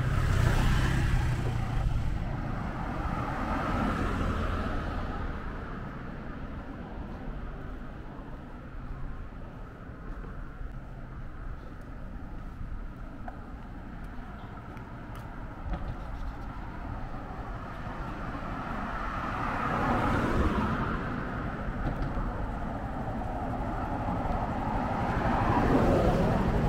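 A motorcycle engine hums steadily nearby.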